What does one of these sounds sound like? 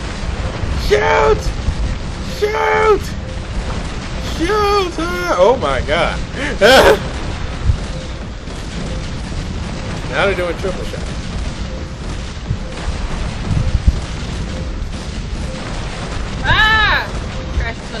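Cannons boom in bursts.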